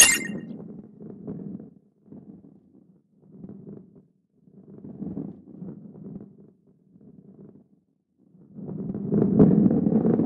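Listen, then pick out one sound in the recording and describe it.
A ball rolls with a low, uneven rumble.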